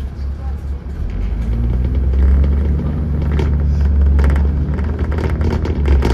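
A bus engine revs and rumbles louder as the bus pulls away.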